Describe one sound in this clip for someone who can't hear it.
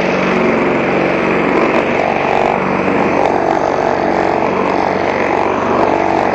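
A petrol lawnmower engine roars steadily up close.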